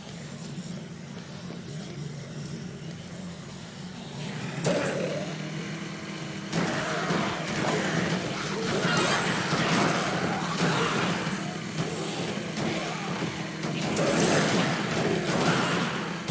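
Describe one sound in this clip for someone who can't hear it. A small vehicle engine hums steadily as it drives.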